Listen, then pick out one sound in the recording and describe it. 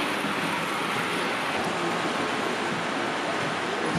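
Small model train wheels rumble and click along the tracks.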